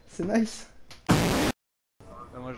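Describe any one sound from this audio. A short burst of loud static hiss cuts in.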